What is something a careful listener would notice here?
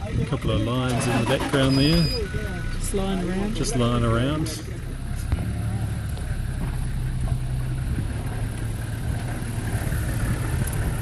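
A vehicle engine idles with a low rumble.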